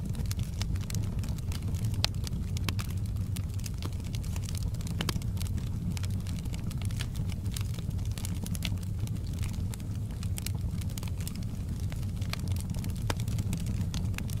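A wood fire roars steadily.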